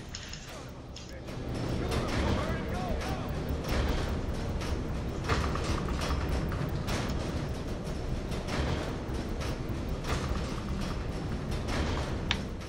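An elevator hums and rattles steadily as it rises.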